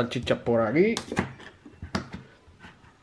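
A metal can clinks against another can.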